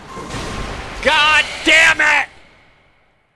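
A young man shouts loudly.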